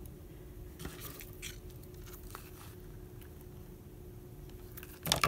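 Paper rustles softly as fingers press and smooth it down.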